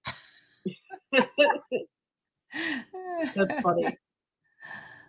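A second woman laughs and talks warmly over an online call.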